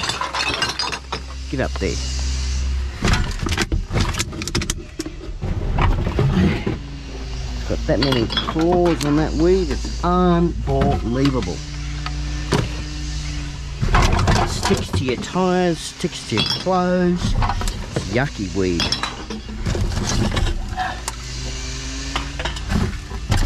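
Glass bottles and metal cans clink and rattle as they are handled.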